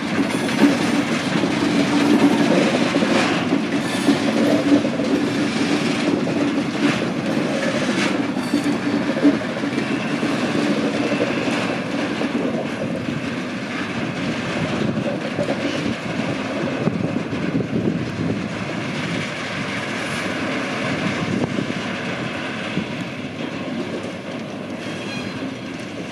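A long freight train rumbles slowly past and gradually fades.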